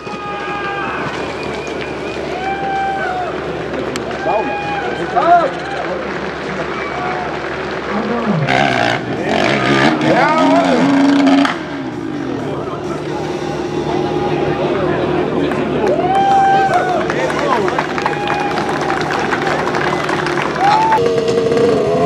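A dirt bike engine revs hard and sputters up a steep slope.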